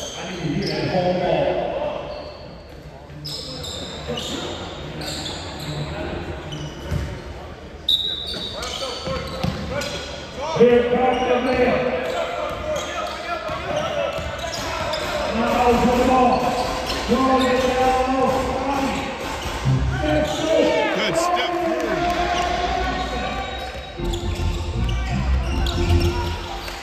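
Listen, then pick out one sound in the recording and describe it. Spectators murmur and call out in the stands.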